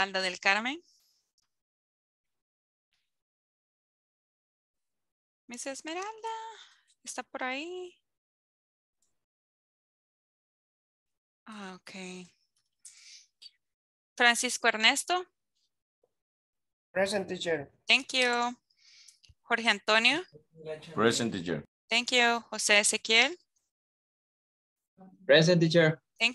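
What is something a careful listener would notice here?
A woman speaks with animation over an online call, in short bursts with pauses.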